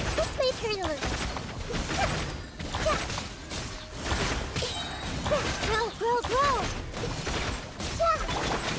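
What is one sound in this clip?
Magical combat effects burst and clash rapidly.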